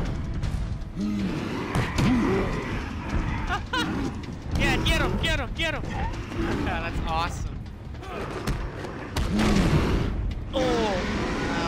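Large brutes grunt and groan as they are struck.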